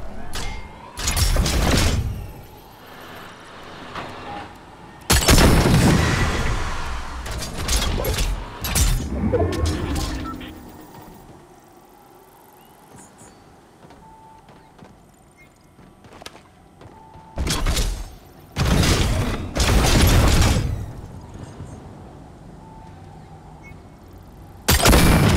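A cannon fires with loud booming whooshes, again and again.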